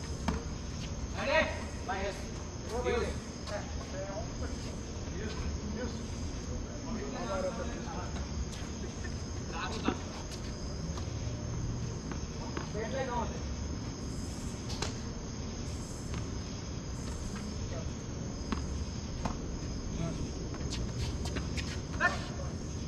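Tennis balls are hit with rackets with sharp pops.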